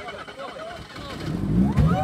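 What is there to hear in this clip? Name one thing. Car tyres crunch over gravel.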